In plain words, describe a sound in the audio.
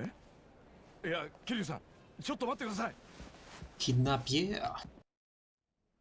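A young man calls out in surprise, close by.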